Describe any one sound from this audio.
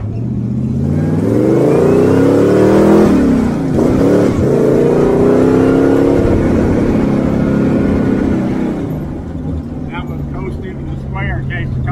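A vehicle engine roars loudly, revving up, dropping briefly as gears change, then rising again before easing off.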